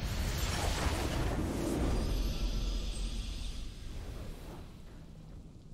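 A triumphant game fanfare plays loudly and then fades away.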